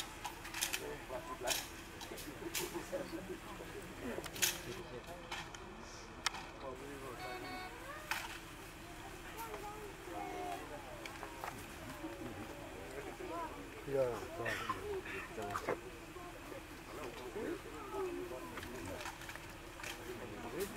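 Rifles clack sharply in drill outdoors.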